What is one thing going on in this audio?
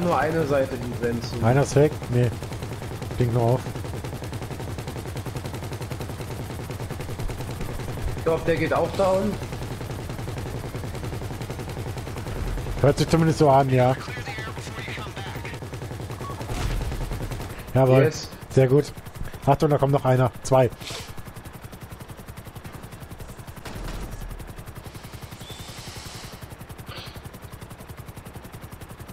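A helicopter's rotor thrums steadily close by.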